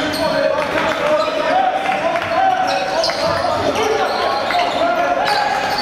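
A basketball bounces on a hard wooden court.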